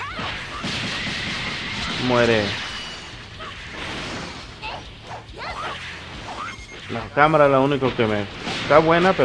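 Energy blasts burst and whoosh.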